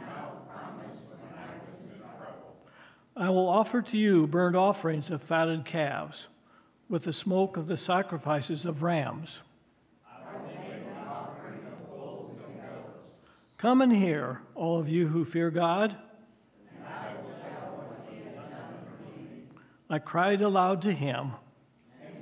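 A middle-aged man reads aloud through a microphone at a steady pace.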